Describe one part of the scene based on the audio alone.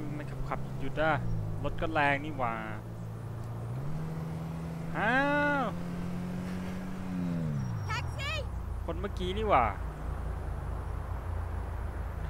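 A car engine hums steadily, its pitch rising and falling with speed.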